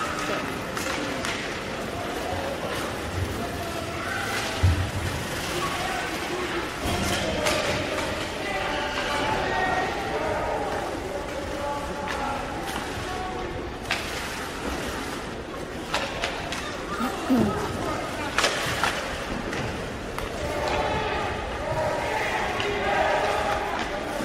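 Hockey sticks and pucks clack and knock against the ice and boards.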